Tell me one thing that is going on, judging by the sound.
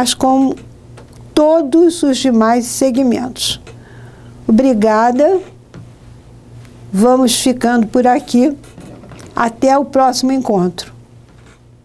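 An elderly woman speaks calmly and clearly into a close microphone.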